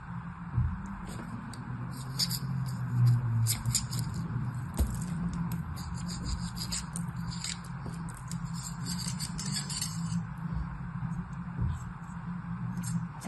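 A small tool scrapes and crumbles dry sand with light crackling clicks.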